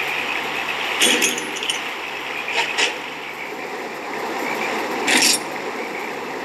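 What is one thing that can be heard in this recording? Short electronic chimes sound as menu options are picked.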